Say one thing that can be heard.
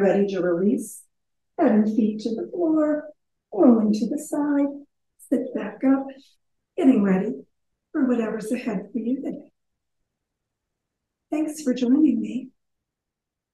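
A woman speaks calmly and gently into a microphone.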